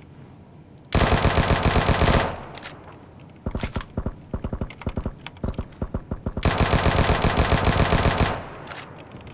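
A rifle fires in loud, rapid bursts.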